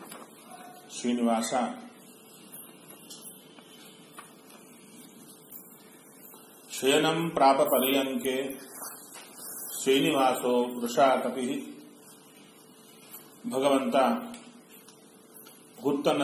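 A middle-aged man speaks calmly in short phrases with pauses, close by.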